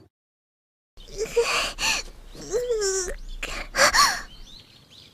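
A young girl speaks with surprise.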